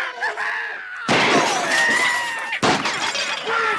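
A man fires a revolver with loud bangs.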